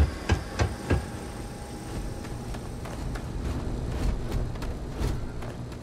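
Footsteps thud softly on hard ground.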